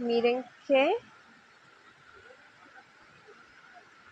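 A small stream trickles softly over stones.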